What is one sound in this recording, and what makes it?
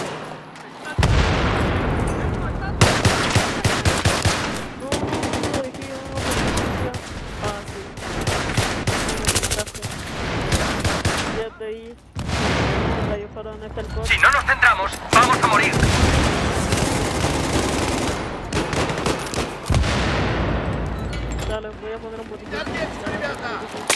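Rapid gunfire bursts loudly and close by.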